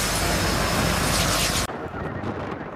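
Jet engines roar loudly close by.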